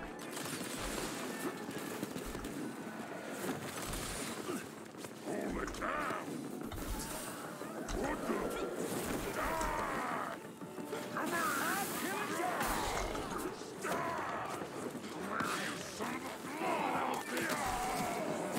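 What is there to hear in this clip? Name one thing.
Magic blasts crackle and boom.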